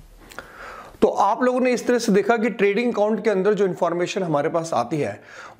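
A man speaks calmly and clearly, close to a microphone, in a slightly echoing room.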